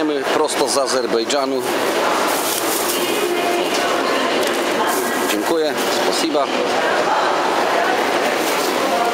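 A busy crowd murmurs in a large echoing hall.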